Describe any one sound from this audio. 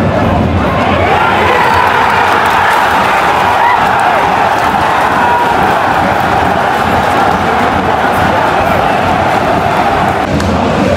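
A crowd of fans sings together in a loud sustained chant.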